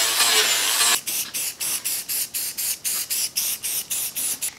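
A man rubs a metal surface by hand with quick, rhythmic strokes.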